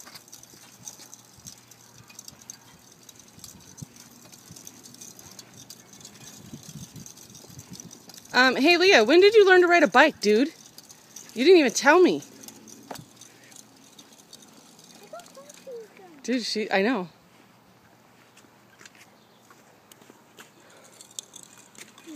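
Small bicycle wheels roll over pavement.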